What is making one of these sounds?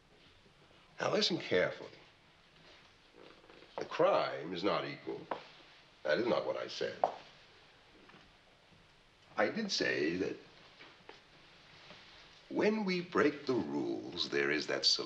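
A middle-aged man speaks slowly and gravely, close by.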